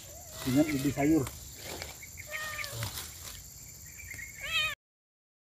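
Leafy plants rustle as they are pulled.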